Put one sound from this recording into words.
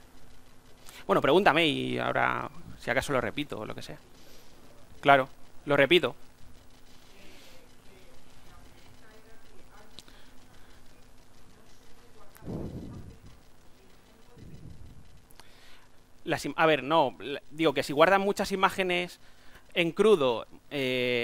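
A man speaks through a microphone in a large room, in bursts with long pauses.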